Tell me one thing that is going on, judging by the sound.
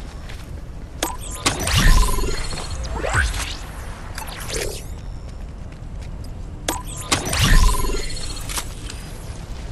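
Electronic chimes and whooshes ring out.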